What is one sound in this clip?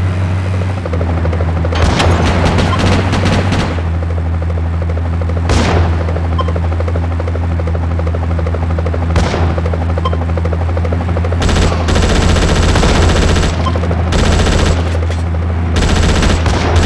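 A car engine roars steadily as a car speeds along.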